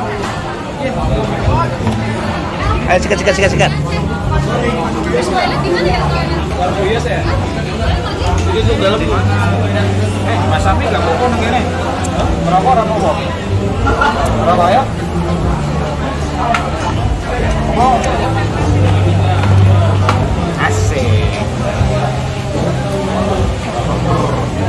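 A crowd of men and women chatters all around in a busy, echoing room.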